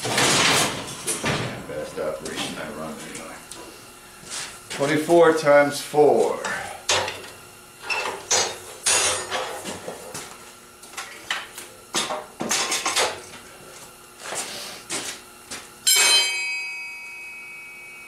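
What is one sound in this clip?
Metal bars clank and rattle against each other.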